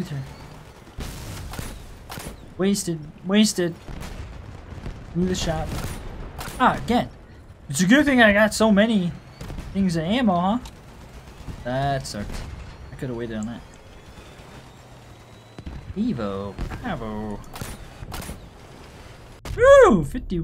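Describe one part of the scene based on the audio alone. Heavy guns fire in loud, sharp bangs.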